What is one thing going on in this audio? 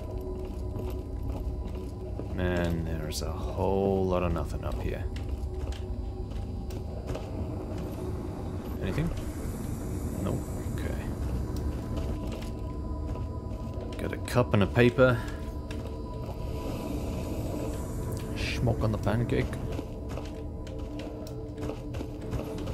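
Footsteps thud slowly on wooden floors indoors.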